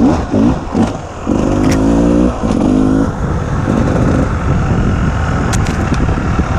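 Tyres crunch over a stony dirt trail.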